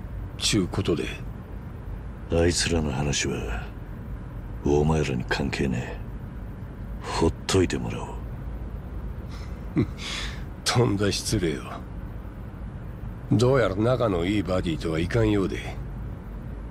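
A man speaks in a sly, mocking tone.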